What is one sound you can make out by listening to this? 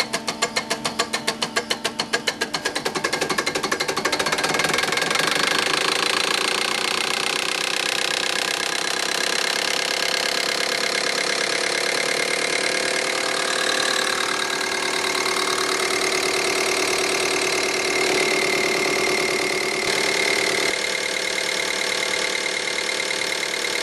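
A rotary diesel injection pump runs on a test bench with a fast ticking whir.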